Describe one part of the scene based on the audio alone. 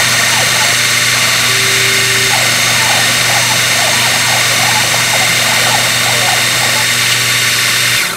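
A cutting bit scrapes and grinds into metal.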